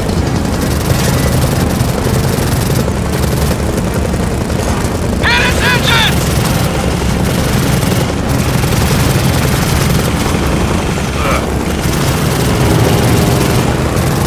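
A helicopter's rotor thumps overhead.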